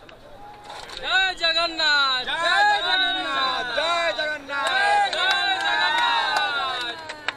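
Young men in a crowd shout and chant loudly outdoors.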